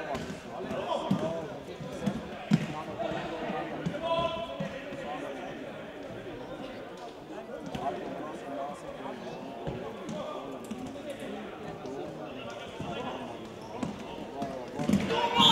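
Players shout to each other across an echoing hall.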